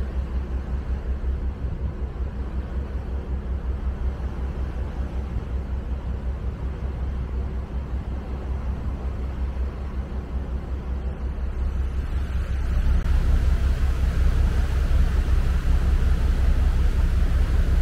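Wind gusts and rumbles steadily outdoors, growing louder toward the end.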